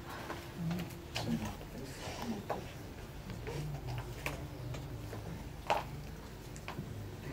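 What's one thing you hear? A woman murmurs softly close by.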